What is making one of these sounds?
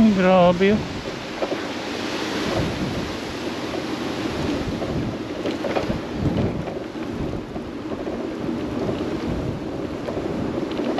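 Wind gusts loudly outdoors, buffeting the microphone.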